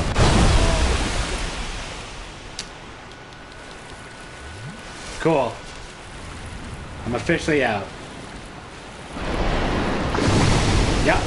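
Water splashes and rushes loudly.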